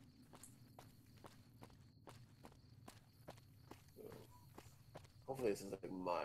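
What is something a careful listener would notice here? Footsteps tread steadily on a wooden walkway.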